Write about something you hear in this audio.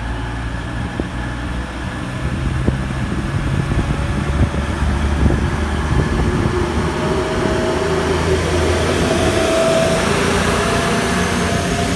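Train wheels clack over the rail joints.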